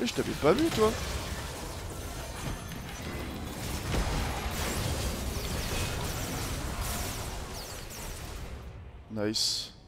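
Game spell effects whoosh and clash in a fight.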